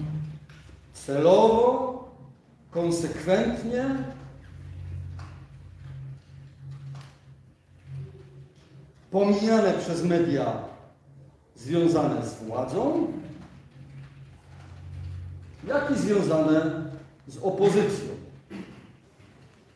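A middle-aged man speaks slowly in bursts in a large echoing room.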